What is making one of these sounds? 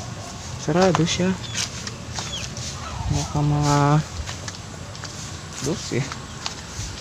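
A young man speaks close to the microphone in short bursts.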